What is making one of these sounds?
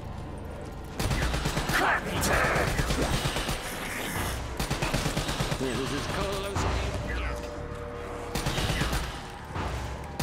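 A gun fires in rapid rattling bursts.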